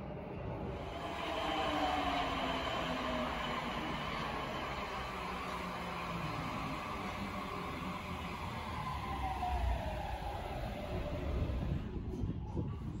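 A subway train rumbles into the station and slows to a stop.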